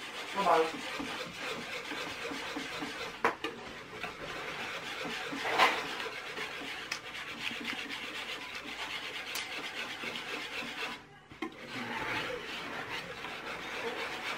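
A whisk clinks and scrapes against a metal bowl.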